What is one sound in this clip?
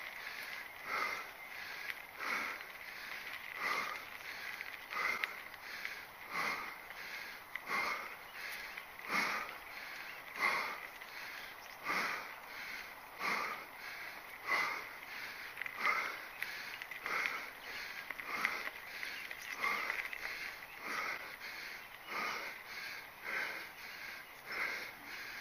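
Knobby mountain bike tyres roll over a dirt trail.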